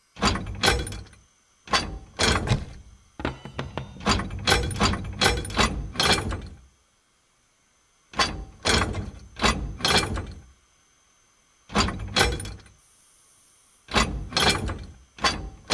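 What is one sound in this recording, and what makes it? Metal rods slide and clank in quick bursts.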